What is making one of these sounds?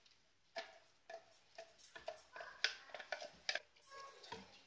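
A metal jar taps against the rim of a pot.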